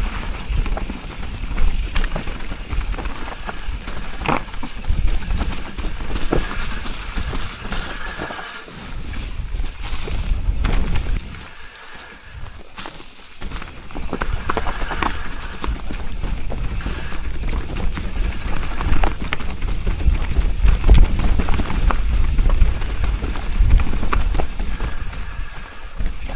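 Wind rumbles against the rider outdoors.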